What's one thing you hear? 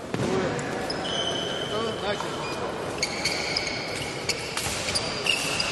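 Sports shoes squeak sharply on a hard floor in a large echoing hall.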